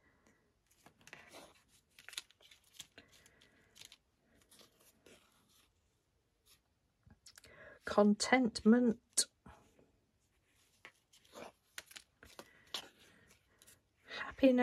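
Small paper cards rustle and tap softly as they are handled.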